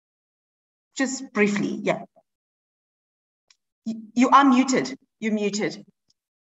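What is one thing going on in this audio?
A woman speaks warmly and with animation through an online call.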